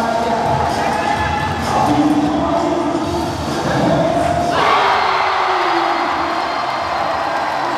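A crowd cheers and roars in a large echoing hall.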